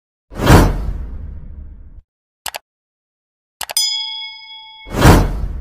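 A whoosh bursts out and fades.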